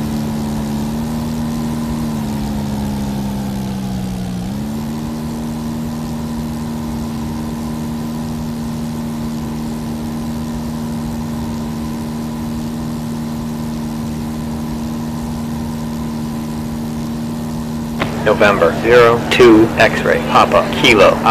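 A drone's rotors hum steadily, dipping in pitch and then rising again.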